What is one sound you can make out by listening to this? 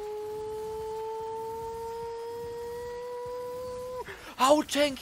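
A steady electronic tone hums and slowly rises in pitch, then cuts off.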